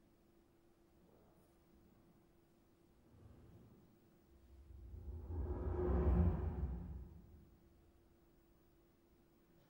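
A small chamber ensemble plays in a large hall, swelling to a loud, deep surge and fading back.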